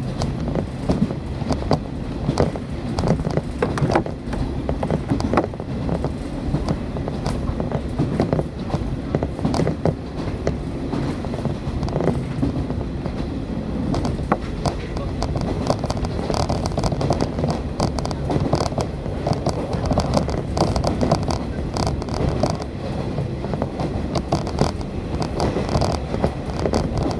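A train rumbles and rattles steadily along the tracks, heard from inside a carriage.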